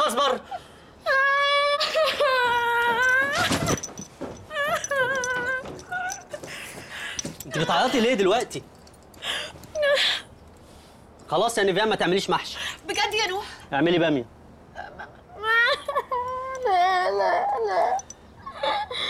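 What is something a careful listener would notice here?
A young woman wails and sobs loudly.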